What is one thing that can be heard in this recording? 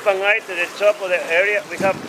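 Water laps and splashes gently against rock.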